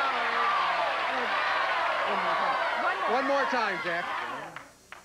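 A large audience cheers and screams loudly, then quickly dies down.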